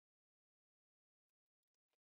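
Metal probe tips click against a circuit board.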